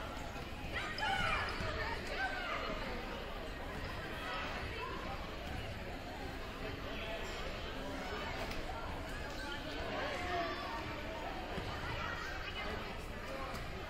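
Children's shoes squeak on a gym floor.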